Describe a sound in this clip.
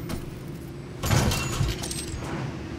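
A metal crate clanks open with a sharp mechanical clatter.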